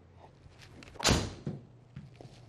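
A golf club strikes a ball with a sharp whack.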